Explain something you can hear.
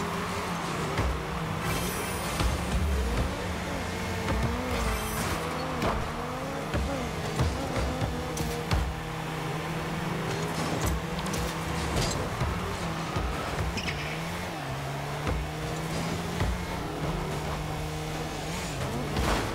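Car engines hum and whine steadily.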